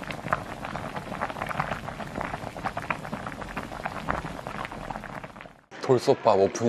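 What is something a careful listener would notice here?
Stew bubbles and simmers in a pot.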